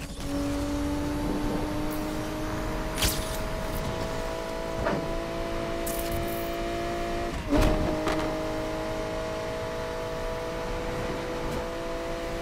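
A car engine drones steadily at high speed.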